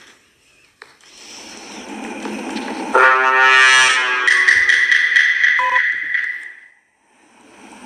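A dramatic electronic fanfare swells and rings out, then fades.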